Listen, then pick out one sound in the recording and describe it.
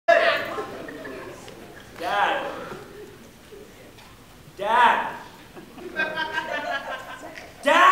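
A young man makes loud, sudden vocal bursts through a microphone in a large echoing hall.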